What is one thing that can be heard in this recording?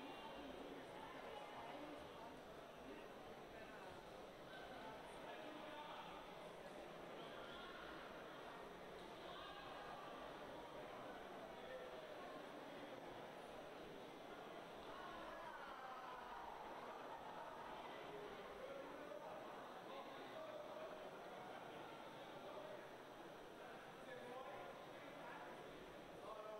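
Swimmers splash through water.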